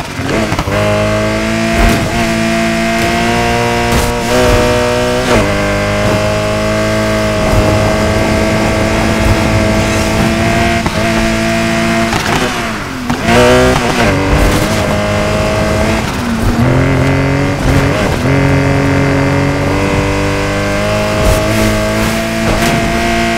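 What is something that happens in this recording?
Tyres screech as a car drifts through corners.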